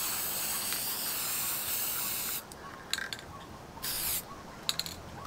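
A spray can hisses in short and long bursts.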